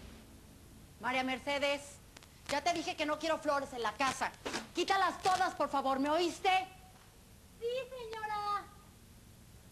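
A young woman speaks sharply and with annoyance.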